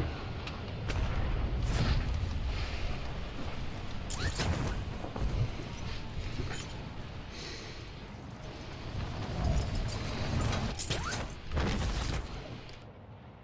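Wind rushes past during a fall through the air.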